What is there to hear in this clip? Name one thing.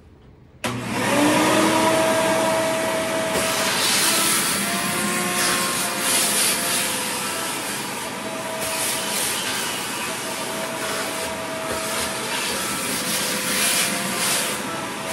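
A vacuum cleaner whirs loudly and steadily, close by.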